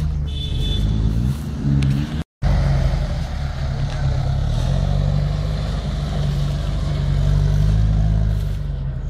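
An off-road vehicle's engine rumbles and revs as it drives through mud.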